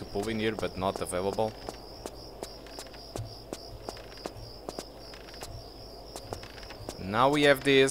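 Quick footsteps patter on a hard stone floor.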